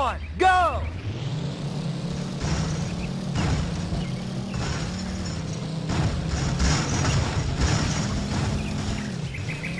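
A car engine roars loudly as the car races.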